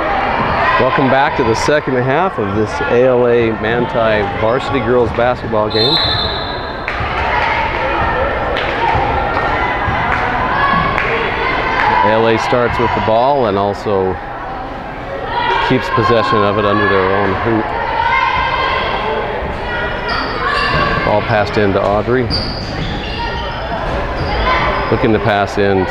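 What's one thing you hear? A crowd of spectators cheers and shouts loudly in an echoing gym.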